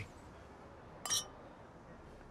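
Glasses clink together once.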